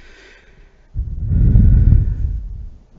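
A man breathes out slowly and heavily into a microphone.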